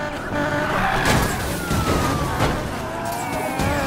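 Tyres screech as a car skids and spins.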